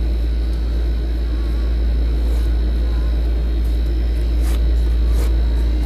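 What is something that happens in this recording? A marker scratches on cardboard.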